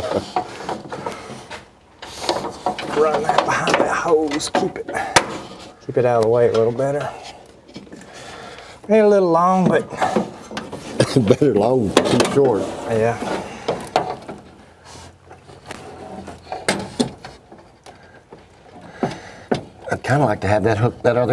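Metal parts click and clink.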